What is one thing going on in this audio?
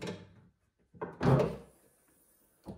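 A car bonnet clunks open.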